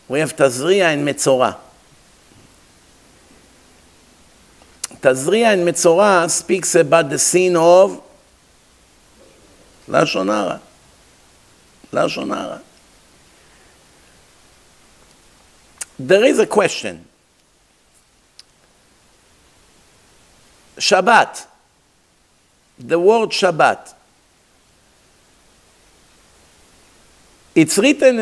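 A middle-aged man speaks into a microphone in bursts, with pauses between phrases.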